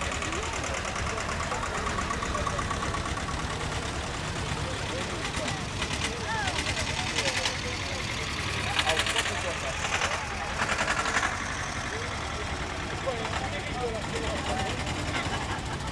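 Old tractor engines putter and chug past up close.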